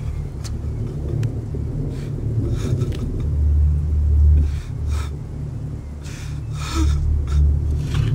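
A body scrapes along the ground as it is dragged.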